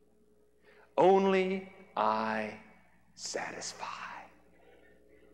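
A man speaks with animation into a clip-on microphone.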